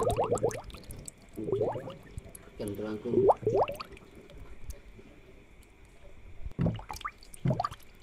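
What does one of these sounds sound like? Air bubbles stream and gurgle softly in water.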